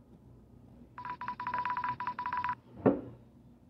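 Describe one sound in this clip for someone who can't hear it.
Another young boy answers in a high, beeping voice.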